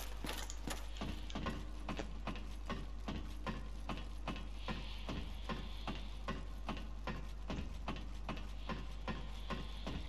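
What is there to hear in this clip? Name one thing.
Metal footsteps clank steadily up a ladder.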